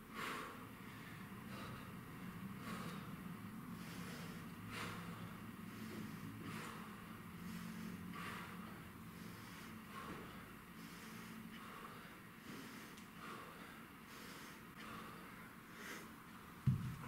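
A man breathes out sharply with each lift.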